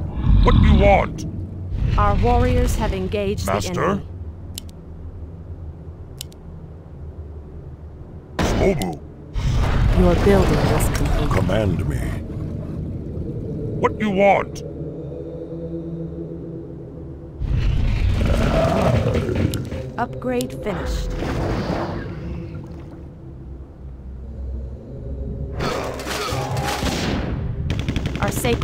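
Magic blasts crackle and boom in a game battle.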